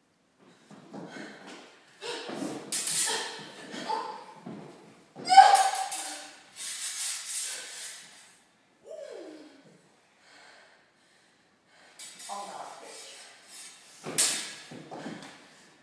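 Sword blades clash and scrape together.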